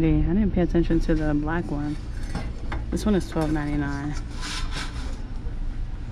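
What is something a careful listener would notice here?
A metal bin's lid rattles as it is lifted.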